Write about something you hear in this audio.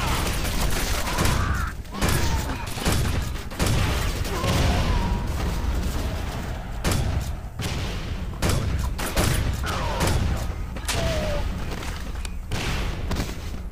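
Gunshots fire in bursts, loud and close.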